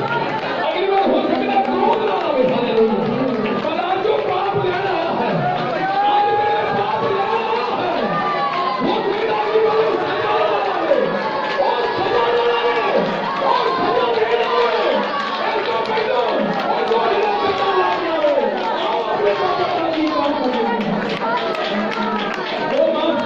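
A group of women sing together loudly in a small room.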